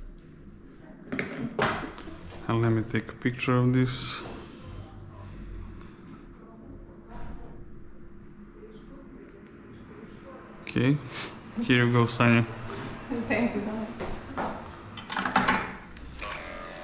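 A young woman talks and laughs nearby.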